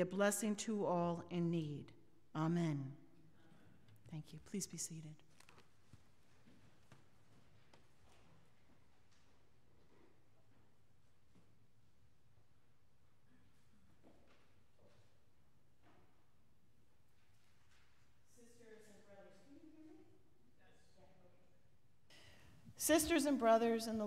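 A woman speaks clearly through a microphone in a large echoing room.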